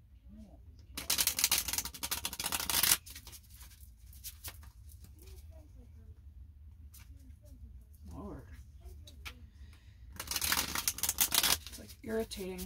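Playing cards riffle and rustle as they are shuffled by hand.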